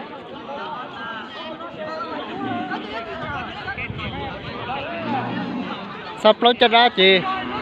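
A crowd of men and women chatter and call out outdoors.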